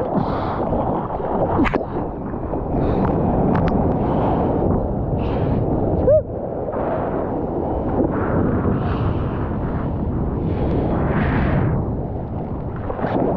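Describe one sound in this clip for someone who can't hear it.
Water rushes and splashes loudly around a surfboard close by.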